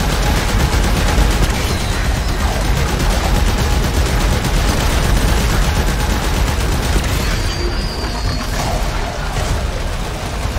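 Electric energy crackles and buzzes loudly.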